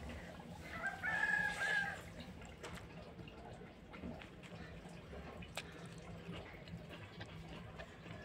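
A woman chews food with soft smacking sounds.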